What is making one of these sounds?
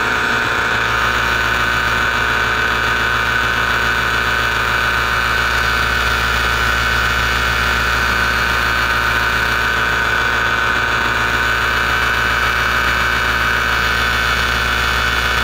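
Wind rushes steadily past during a flight high in the open air.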